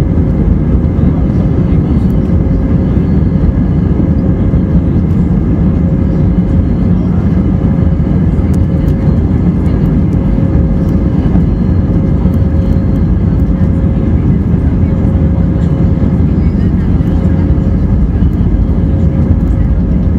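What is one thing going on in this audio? Wheels rumble and thump over the runway.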